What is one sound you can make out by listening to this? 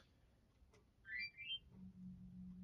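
A video game gives a short rising chime as a menu opens.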